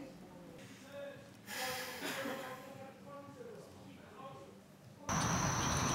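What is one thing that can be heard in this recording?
A young woman giggles softly.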